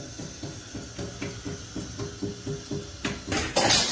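Tap water splashes into a metal sink.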